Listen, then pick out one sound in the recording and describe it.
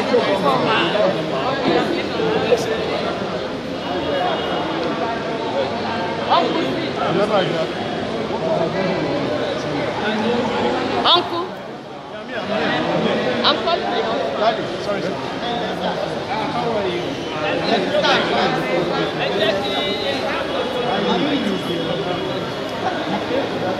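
A crowd of men and women sings loudly close by.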